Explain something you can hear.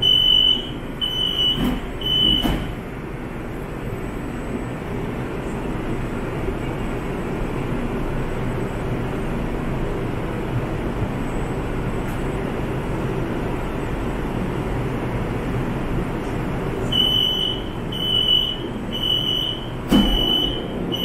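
A train's door warning chime beeps quickly and repeatedly.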